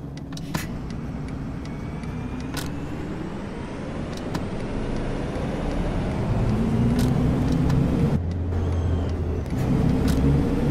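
A bus engine revs up and rises in pitch as the bus pulls away.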